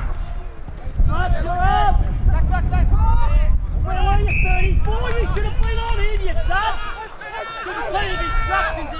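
Young men shout and call out across the field.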